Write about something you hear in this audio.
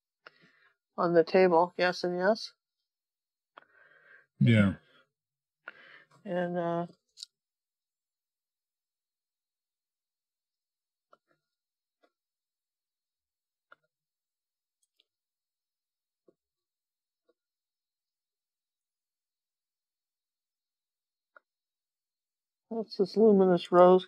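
A woman talks calmly and close into a microphone.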